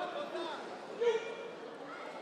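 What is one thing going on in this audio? A man referee calls out loudly.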